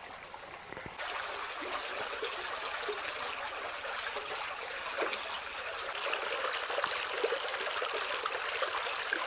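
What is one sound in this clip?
Water trickles gently over stones outdoors.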